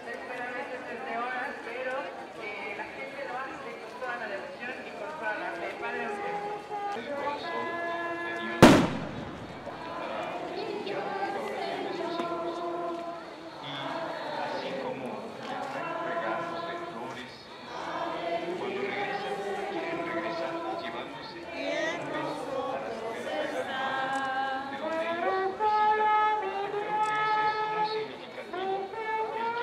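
A crowd of men and women sing together slowly outdoors.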